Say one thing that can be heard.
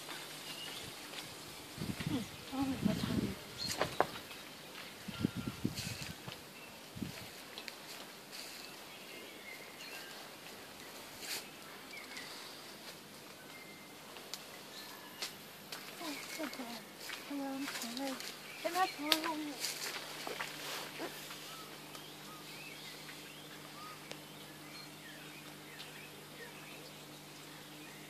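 A large bird's footsteps rustle softly through dry leaves.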